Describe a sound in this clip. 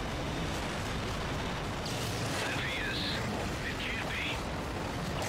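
A heavy robot's engine rumbles low and steady.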